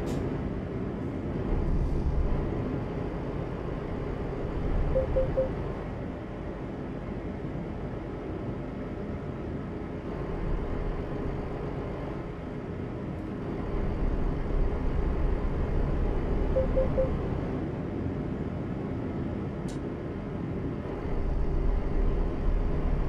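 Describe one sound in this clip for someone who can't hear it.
A heavy diesel truck engine drones while cruising.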